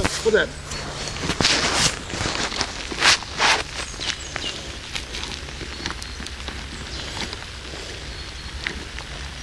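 Dry leaves and twigs rustle and snap close by.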